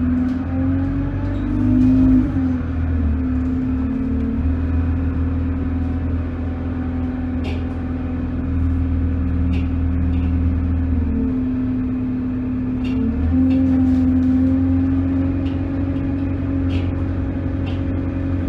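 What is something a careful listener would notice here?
A bus engine hums and whines steadily, shifting pitch as it changes gear.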